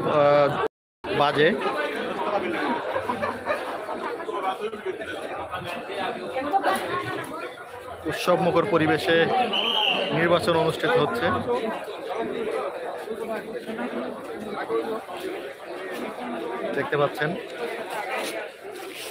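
A crowd of men and women chatter all around outdoors.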